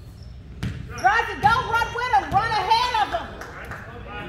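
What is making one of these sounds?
Young players shout and call out across the court.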